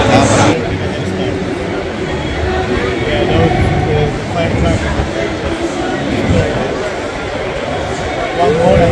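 A crowd of men and women chatters close by outdoors.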